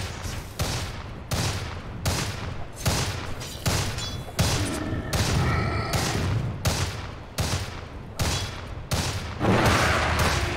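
Heavy blows thud and crash in quick, steady succession.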